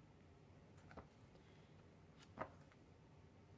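A paperback book is turned over in the hands with a soft tap.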